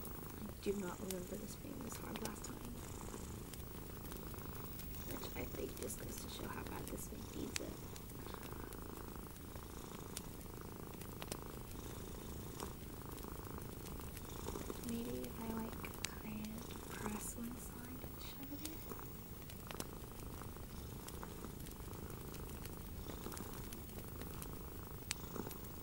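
Long fingernails tap and click against a small metal object.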